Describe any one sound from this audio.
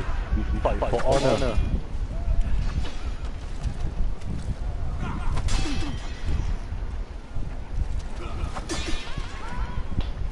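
Swords clash with sharp metallic rings.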